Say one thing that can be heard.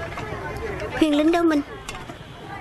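A young woman speaks with dismay, close by.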